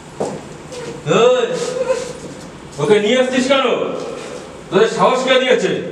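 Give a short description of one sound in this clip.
A man speaks loudly and angrily, close by.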